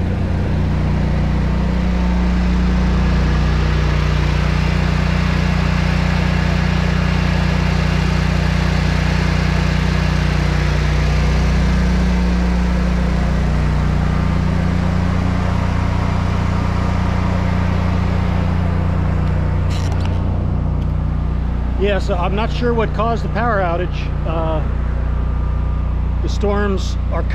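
A generator engine hums steadily close by.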